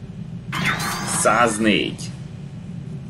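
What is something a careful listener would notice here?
A video game plays a short bright victory jingle.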